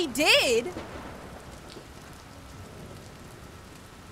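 A young woman speaks expressively into a close microphone.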